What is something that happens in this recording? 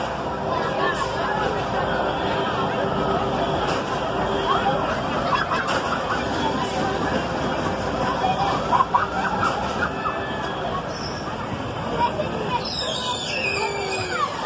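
A swinging ship ride whooshes back and forth.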